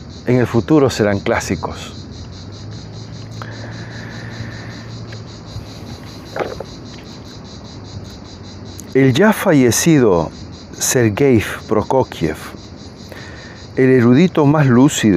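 A middle-aged man talks calmly and close to the microphone, with pauses.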